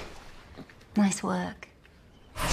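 A woman speaks briefly and warmly.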